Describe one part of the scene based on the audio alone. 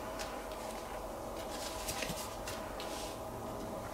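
A card is slid onto a table with a soft tap.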